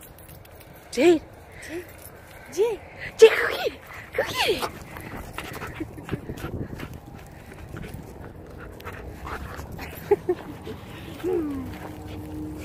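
A dog whines and yelps in short high cries nearby.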